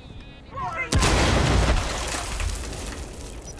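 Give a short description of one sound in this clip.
An explosion booms loudly nearby.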